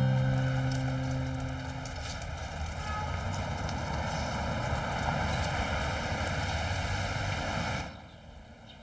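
A car engine hums as a car drives up and passes close by.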